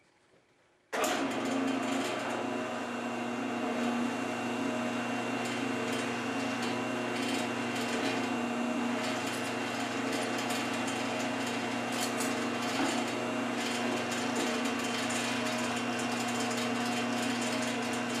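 A milling machine motor hums steadily.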